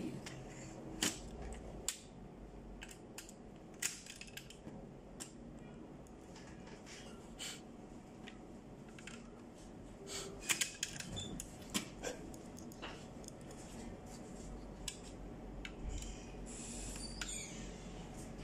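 A screwdriver scrapes and taps against plastic.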